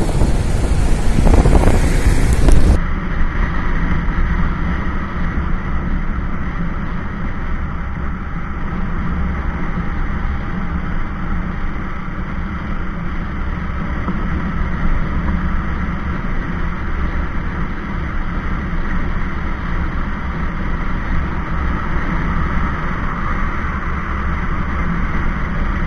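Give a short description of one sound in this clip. Wind roars loudly against the microphone, then drops to a softer rush.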